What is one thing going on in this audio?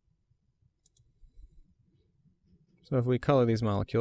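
A computer mouse clicks once.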